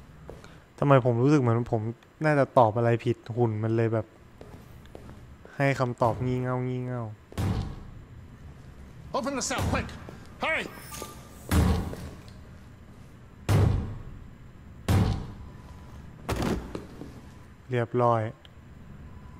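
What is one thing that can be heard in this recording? A man speaks with urgency close by.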